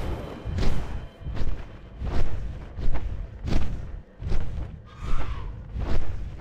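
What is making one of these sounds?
Large wings beat in steady, rhythmic whooshes.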